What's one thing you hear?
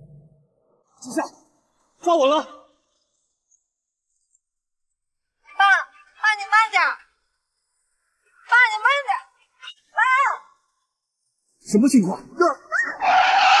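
A man shouts angrily, close by.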